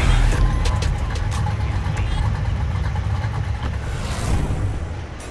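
A car engine idles with a deep, throbbing rumble.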